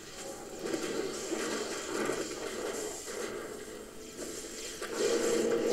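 Spells crackle and burst in a fast game battle.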